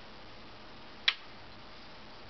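A card taps down on a hard table.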